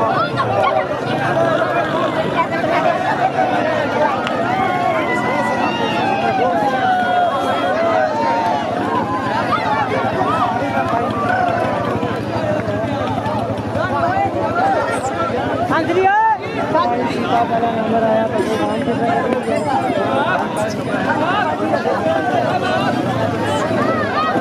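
A large crowd of men and boys shouts and cheers loudly outdoors.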